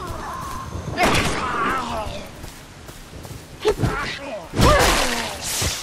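A pistol fires loud shots.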